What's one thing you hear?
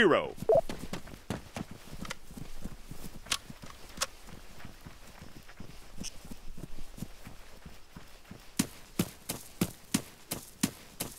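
Footsteps run quickly over dry ground and grass.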